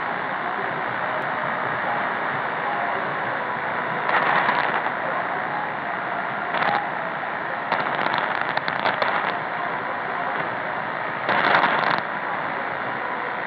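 A radio hisses with static and faint, crackling reception throughout.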